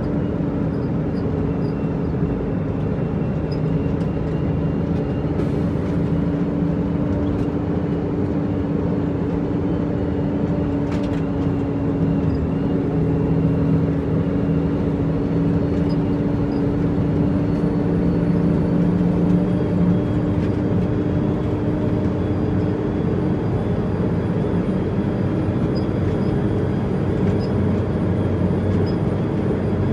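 A truck's cab rattles and creaks over a rough road.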